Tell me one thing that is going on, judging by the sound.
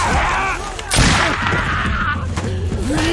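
A musket fires with a loud bang.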